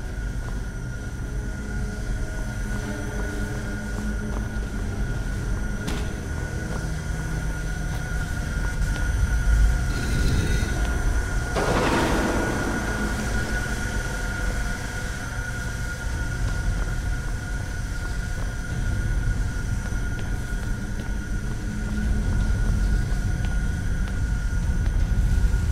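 Footsteps scuff on stone floor in a large echoing space.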